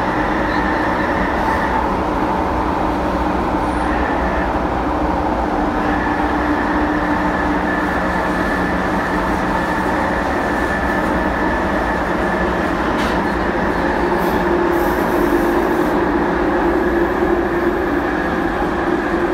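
Train wheels squeal with a steady high whine.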